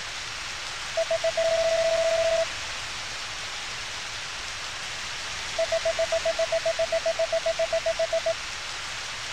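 Quick, even electronic blips chatter as text types out in a game.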